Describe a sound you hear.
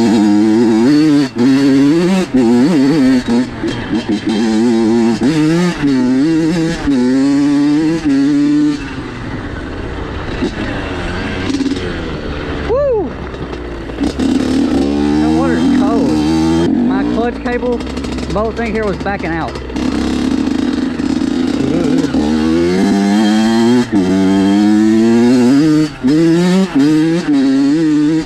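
Tyres crunch over a rough dirt trail.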